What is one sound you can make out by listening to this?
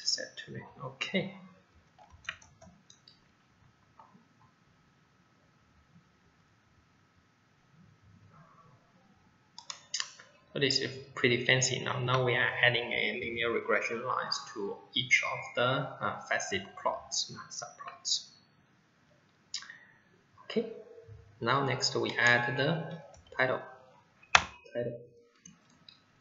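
A man speaks calmly and clearly into a microphone, explaining as he goes.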